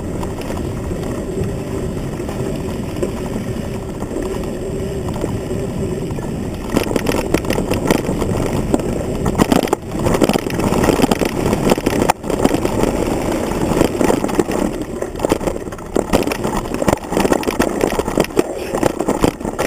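A mountain bike rattles and clatters over a rough dirt trail.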